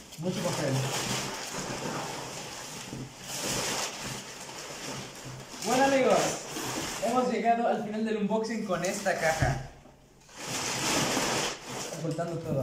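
Paper packing crinkles and rustles loudly as it is pulled out.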